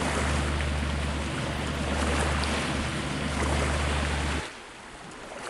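A boat engine rumbles steadily on the sea.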